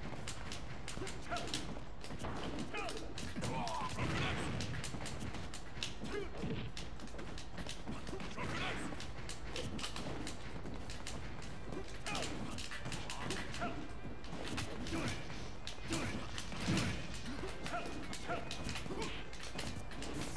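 Game hits and explosions thump and crack quickly.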